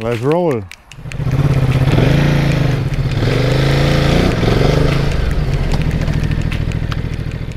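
A motorcycle engine rumbles and revs repeatedly.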